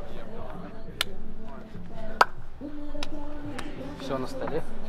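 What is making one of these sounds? Hands slap together in high fives.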